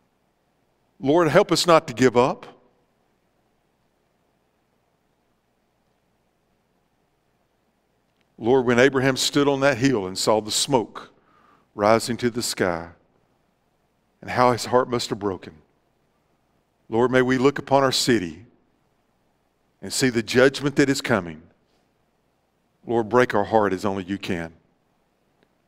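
A middle-aged man speaks slowly and calmly with long pauses, heard through a microphone in a large echoing room.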